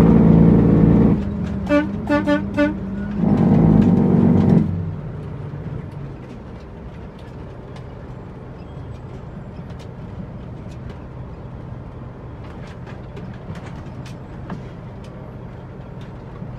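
A truck cab rattles and creaks over a bumpy road.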